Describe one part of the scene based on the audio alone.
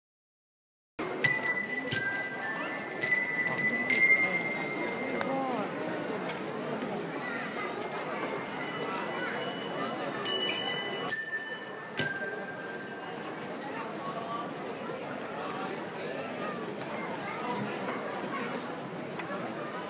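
A crowd murmurs in the background outdoors.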